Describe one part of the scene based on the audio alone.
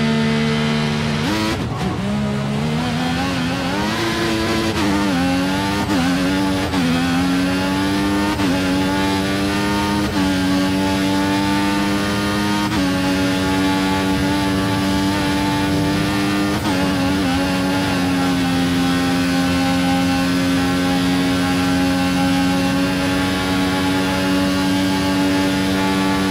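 A racing car engine roars loudly, rising in pitch through each gear and dropping briefly at every gear change.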